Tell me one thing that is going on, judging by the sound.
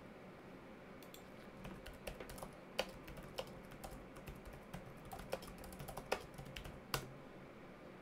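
Keys clatter as someone types quickly on a keyboard.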